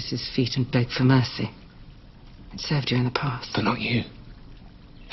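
A woman speaks quietly and calmly up close.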